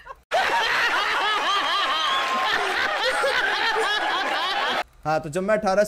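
A crowd laughs.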